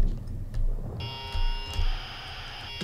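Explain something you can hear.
Harsh electronic glitch tones buzz from a video game.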